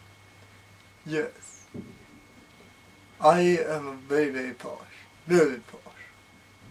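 A young man speaks in short bursts with animation close to a microphone.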